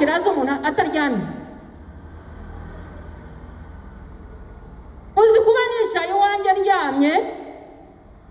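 A woman speaks slowly and with feeling into a microphone, heard through loudspeakers in an echoing hall.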